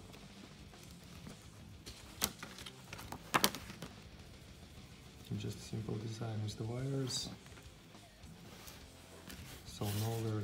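A paper booklet rustles as its pages are turned.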